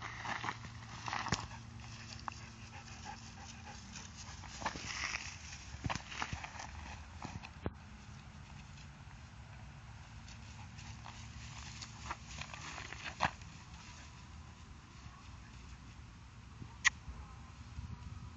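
Grass rustles and crackles as a dog pushes through it.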